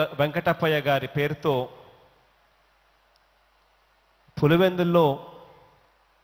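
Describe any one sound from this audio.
A man speaks calmly into a microphone, with pauses, in a large echoing hall.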